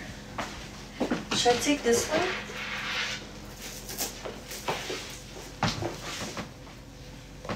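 A young woman speaks close to a phone microphone.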